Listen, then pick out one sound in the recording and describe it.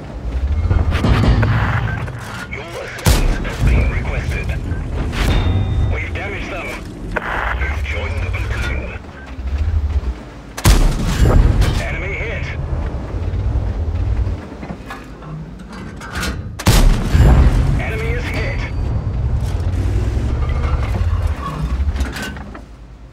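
A tank engine rumbles deeply.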